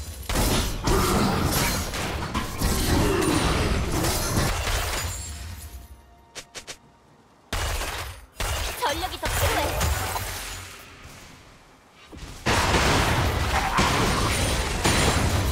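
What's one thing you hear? Fighting effects in a video game whoosh, crackle and boom.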